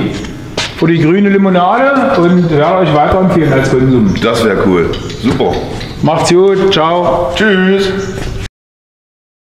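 A man talks with animation close by, in a large echoing room.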